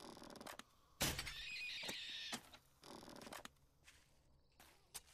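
A crossbow fires with a sharp twang.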